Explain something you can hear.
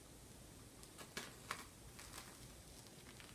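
A young woman crunches on a cookie.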